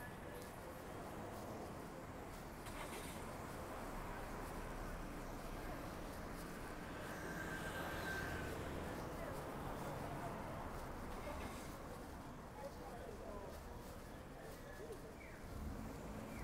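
Street noise and a low traffic hum fill the air outdoors.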